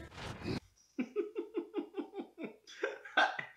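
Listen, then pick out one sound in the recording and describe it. A young man laughs in short bursts close by.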